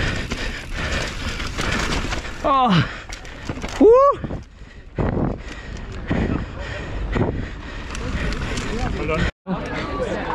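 Bike tyres rumble and rattle over a rough dirt trail.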